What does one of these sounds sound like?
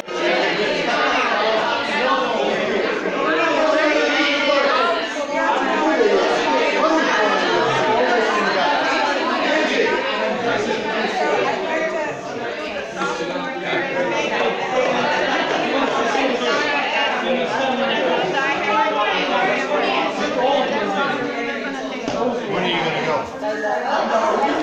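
Several women talk and chatter close by.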